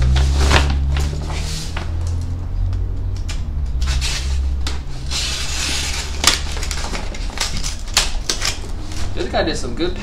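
Packing tape is cut and pulled from a cardboard box.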